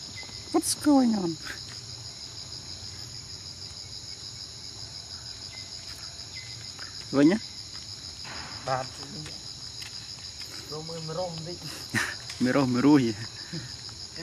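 A young monkey squeaks and chirps up close.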